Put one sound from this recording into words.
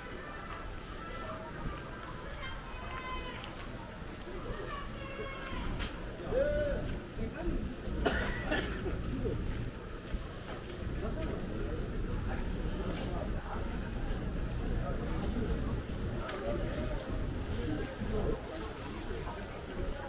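Footsteps splash on a wet pavement.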